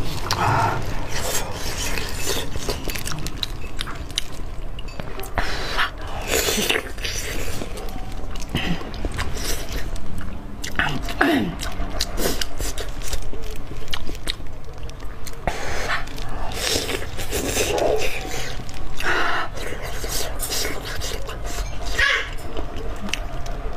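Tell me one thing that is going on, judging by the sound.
A young woman chews and smacks wet food close to a microphone.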